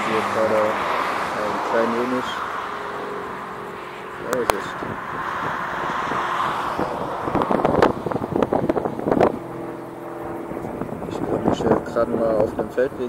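Wind blows across open fields.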